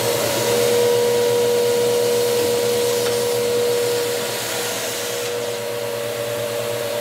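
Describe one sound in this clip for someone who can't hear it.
A vacuum cleaner motor whirs loudly and steadily close by.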